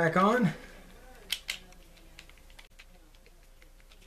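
Small metal parts of a spinning reel click as they are handled.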